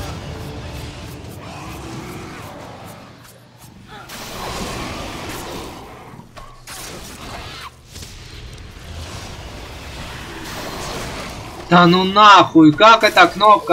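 Blades slash and strike flesh in a fight.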